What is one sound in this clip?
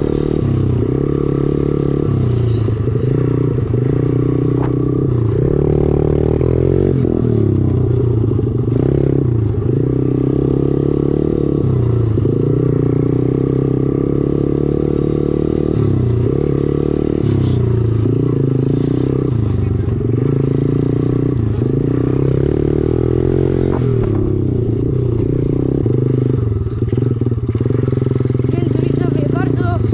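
A dirt bike engine roars close by, revving up and down as the rider shifts gears.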